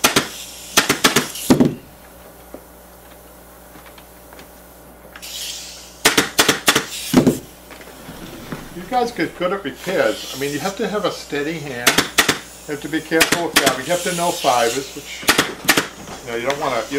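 A staple gun snaps sharply in quick bursts.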